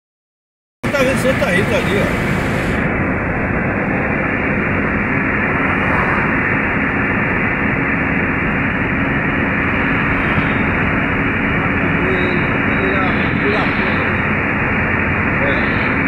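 Tyres roar steadily on a highway, heard from inside a car.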